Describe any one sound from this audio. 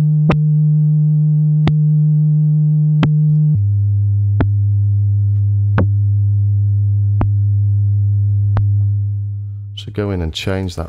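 A synthesizer holds a deep buzzing bass note that drops lower partway through.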